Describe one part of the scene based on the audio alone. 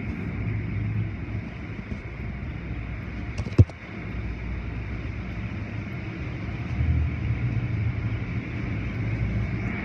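Cloth brushes slap and swish against a car.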